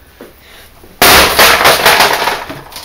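A tool bangs and crunches loudly against a hard plastic casing, over and over.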